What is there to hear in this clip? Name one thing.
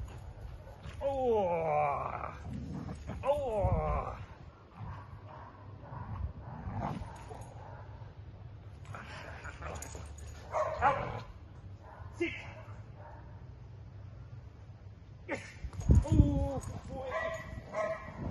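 A dog whines excitedly.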